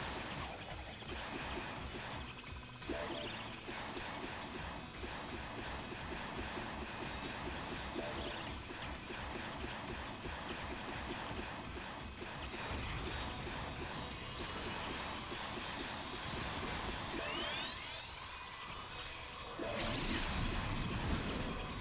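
Sharp blasts pop as game enemies are smashed.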